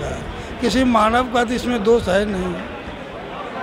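A middle-aged man speaks into a handheld microphone with animation.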